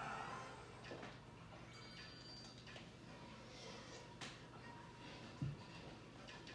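Video game menu music plays quietly from a television.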